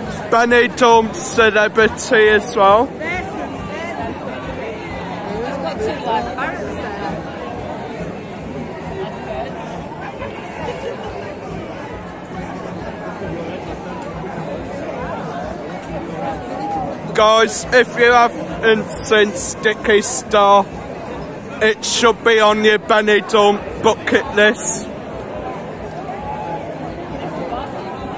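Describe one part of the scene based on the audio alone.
A crowd chatters outdoors all around.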